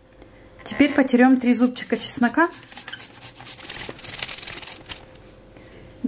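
Garlic scrapes rapidly against a small metal grater.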